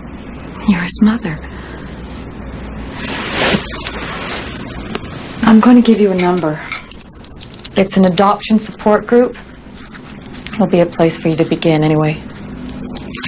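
A middle-aged woman speaks calmly, close by.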